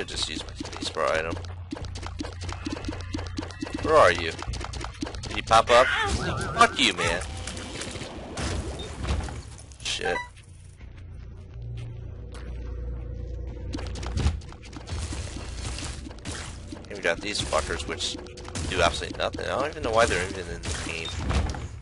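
Video game shots pop and splash repeatedly.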